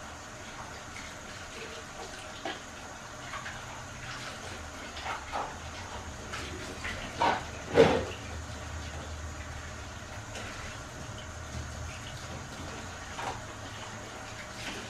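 Dishes clink and clatter at a sink.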